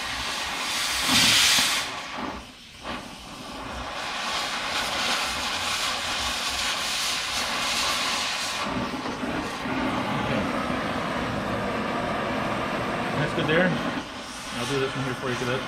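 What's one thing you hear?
A cutting torch roars and hisses steadily against metal.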